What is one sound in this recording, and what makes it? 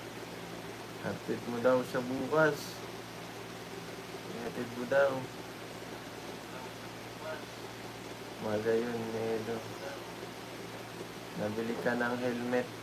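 A young man speaks casually in short bursts, close by.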